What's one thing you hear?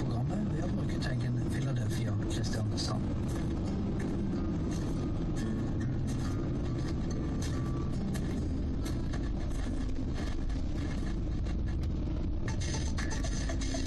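Tyres roll and rumble on the road surface.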